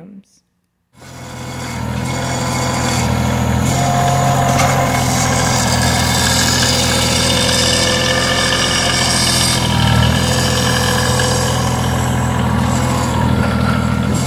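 A tractor engine runs steadily close by.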